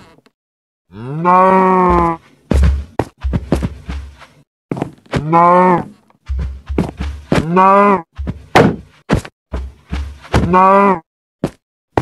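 A buffalo bellows with long, low moans.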